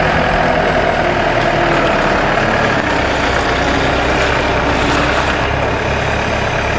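A diesel engine of a small loader roars and rumbles steadily.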